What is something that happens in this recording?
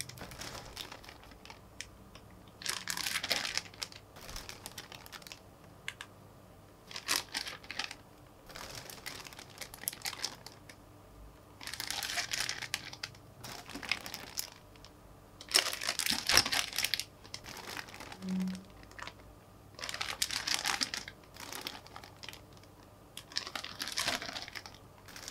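Plastic bags crinkle and rustle in hands close by.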